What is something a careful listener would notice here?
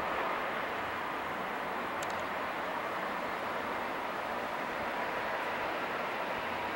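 An electric train rumbles along the rails and slowly recedes.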